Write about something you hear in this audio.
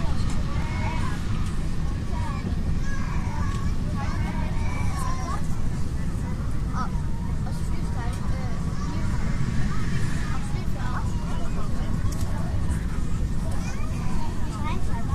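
An airliner's engines roar steadily from inside the cabin.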